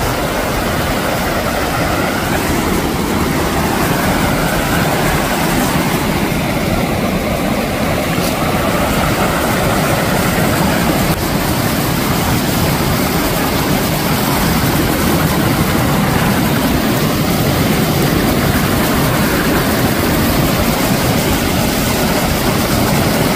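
A stream rushes loudly over rocks close by.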